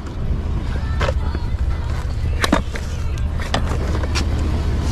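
A metal hand truck clanks and knocks as it is lifted and moved.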